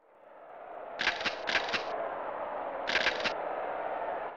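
Short electronic menu beeps chime.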